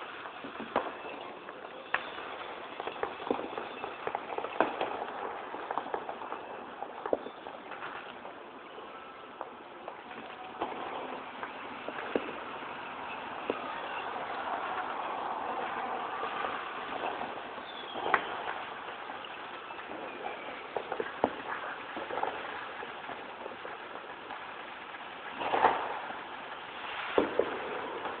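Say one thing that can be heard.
Cars drive past on a nearby road, with a swelling hum.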